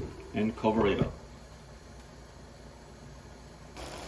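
A glass lid clinks onto a pan.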